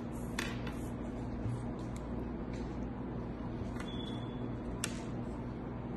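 Plastic counters click down onto a board.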